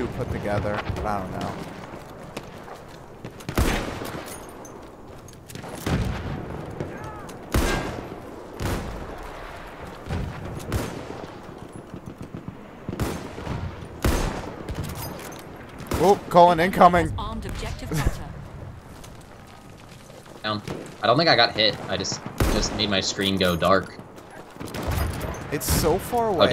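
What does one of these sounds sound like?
Gunfire crackles in the distance.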